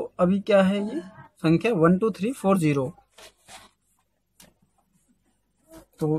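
Paper rustles as a sheet is moved.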